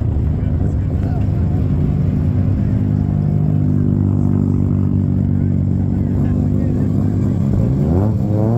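A sports car engine idles and revs loudly as it rolls past close by.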